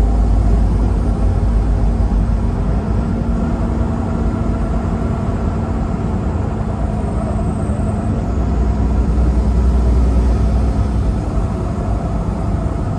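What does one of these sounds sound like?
Wind rushes against the moving vehicle.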